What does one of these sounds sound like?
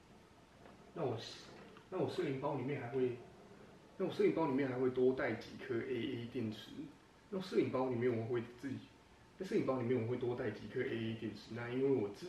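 A young man speaks close into a handheld microphone.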